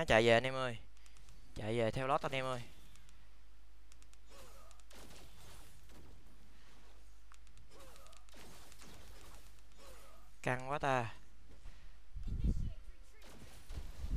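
Game sound effects of fighting and spells clash and whoosh.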